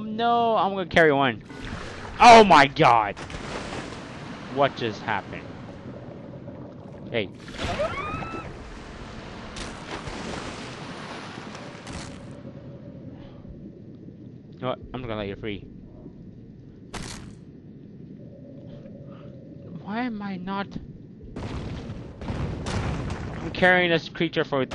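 Water rushes and swirls as a shark swims underwater.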